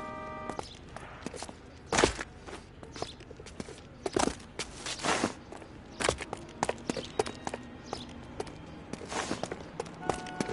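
Footsteps run quickly across a hard rooftop.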